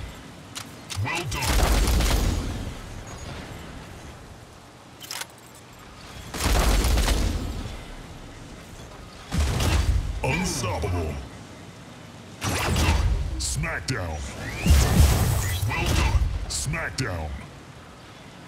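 Heavy guns fire in loud, rumbling bursts.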